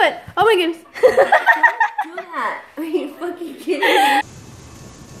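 A woman screams in fright.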